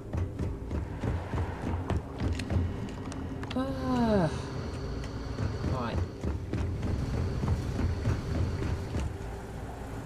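Heavy footsteps thud along a metal floor.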